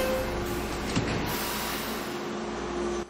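Train doors slide shut.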